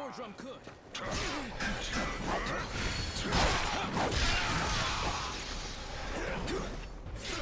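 Swords clash and ring in a fight.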